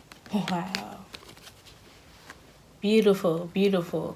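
A card is set down on the floor with a light tap.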